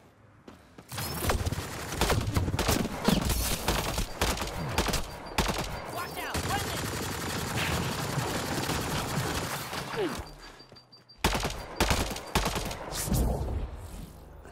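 Rifle shots crack sharply, one after another.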